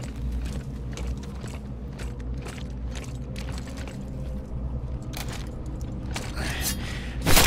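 Heavy footsteps crunch on snow and rubble.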